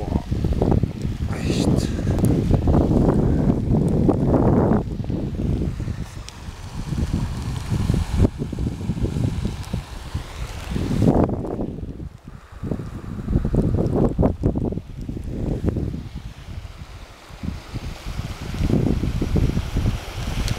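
Wind blows outdoors in gusts.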